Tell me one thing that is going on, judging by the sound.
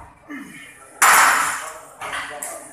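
Weight plates clank loudly as a loaded barbell is racked.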